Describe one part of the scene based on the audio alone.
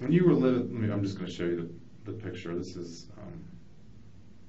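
A man speaks calmly and hesitantly.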